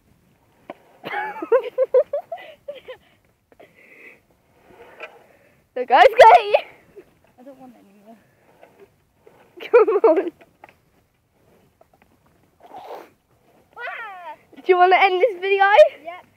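A young girl laughs and talks excitedly close by.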